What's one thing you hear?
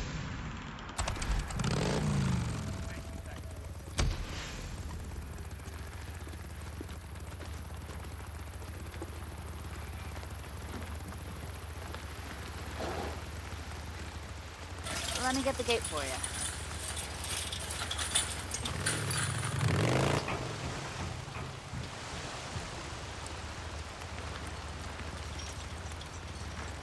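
A motorcycle engine rumbles steadily as it rides along.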